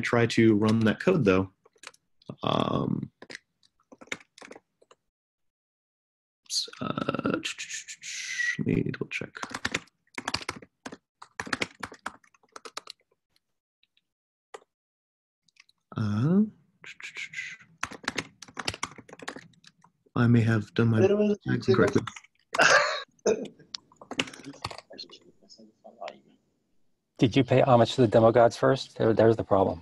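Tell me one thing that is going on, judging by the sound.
A man talks calmly and closely into a microphone, with pauses.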